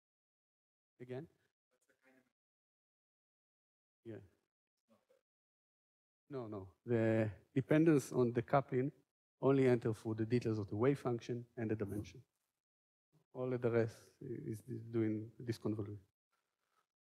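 A man lectures through a microphone, speaking calmly with pauses.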